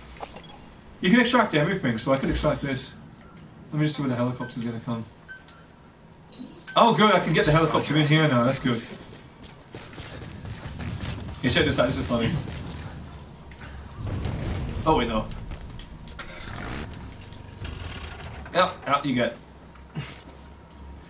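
A young man talks casually into a microphone close by.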